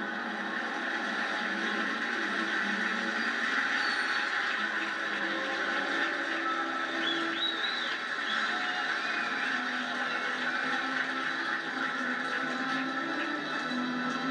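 A large crowd murmurs and cheers in the open air.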